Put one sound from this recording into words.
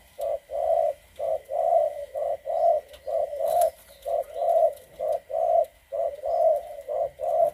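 A dove coos over and over in a steady, rhythmic run of low hoots.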